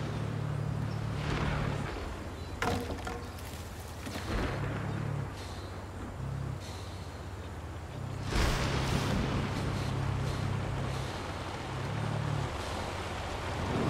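A sports car engine rumbles low and revs up and down in short bursts.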